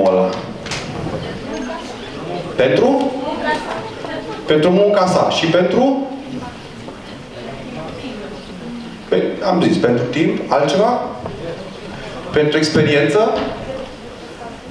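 A man speaks with animation through a microphone in a large room that echoes a little.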